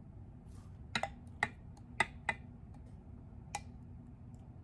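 A glass cup clinks against a jar.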